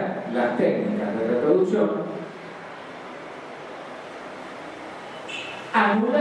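An elderly man speaks calmly into a microphone over loudspeakers in an echoing hall.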